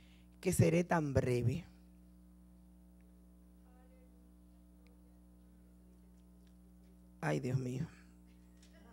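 A woman speaks into a microphone over a loudspeaker, in short bursts with long pauses.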